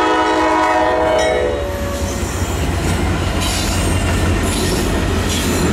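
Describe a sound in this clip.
A train rumbles past close by with wheels clattering on the rails.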